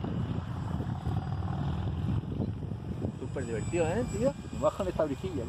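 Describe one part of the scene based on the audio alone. A small model plane's electric motor whirs overhead.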